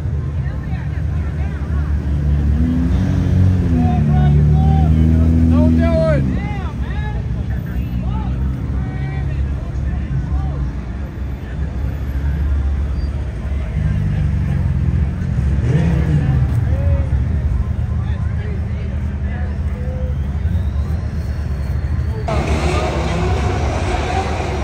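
Car engines rumble steadily nearby.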